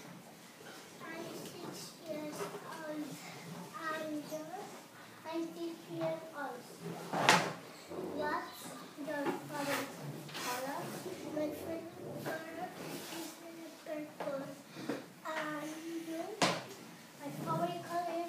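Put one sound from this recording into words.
A young boy answers nearby in an ordinary conversational voice.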